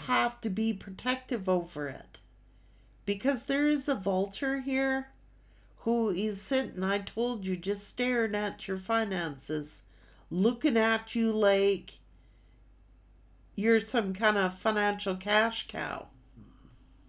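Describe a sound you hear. A middle-aged woman talks calmly and closely into a microphone, in short bursts.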